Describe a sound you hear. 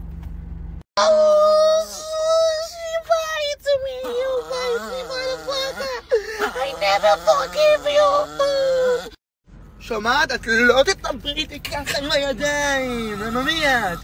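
A small dog howls loudly in long wavering cries.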